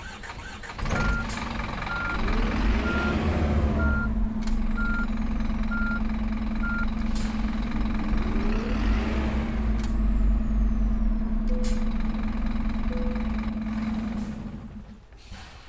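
A bus engine hums steadily and then falls quiet.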